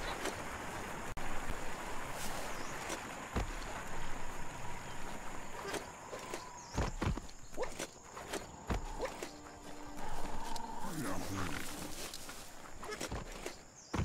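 Footsteps thud over rough ground.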